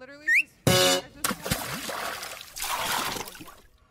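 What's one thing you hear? A dog splashes into water.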